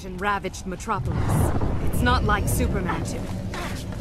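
A fireball bursts with a loud whoosh and roar.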